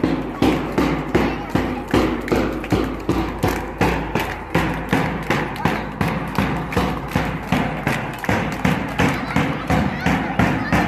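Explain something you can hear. A boy beats a large drum in a quick, steady rhythm.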